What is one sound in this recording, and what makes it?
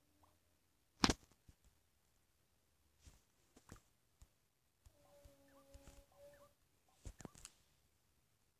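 Soft game clicks sound as items are picked from a menu.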